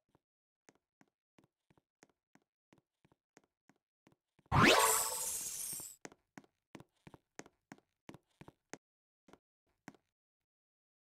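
Soft game footsteps patter at a steady pace.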